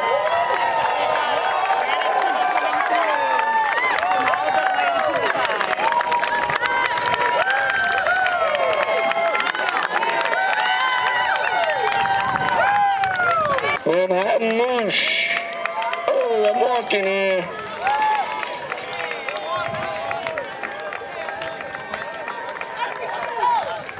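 A large crowd cheers and chatters outdoors.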